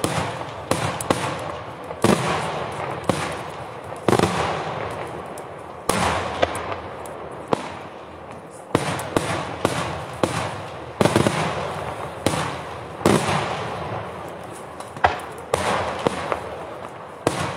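Firecrackers crackle and pop rapidly.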